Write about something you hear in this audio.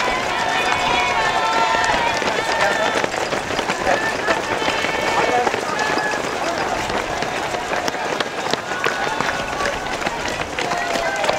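Many running shoes patter on pavement.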